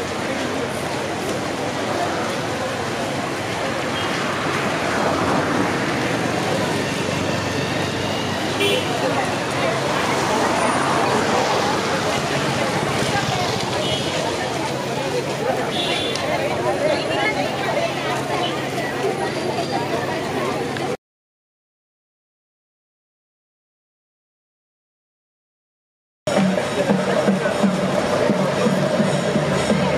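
A large crowd of young people chatters while walking outdoors.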